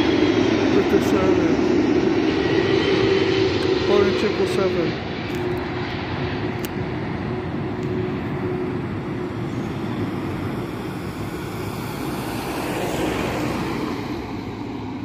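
A jet airliner roars overhead as it descends to land, its engine rumble slowly fading into the distance.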